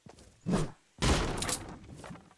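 A pickaxe strikes wood.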